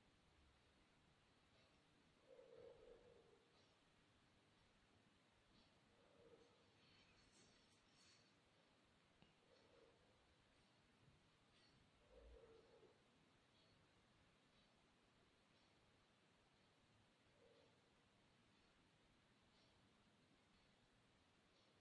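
Tweezers pluck hairs with faint, soft ticks, now and then.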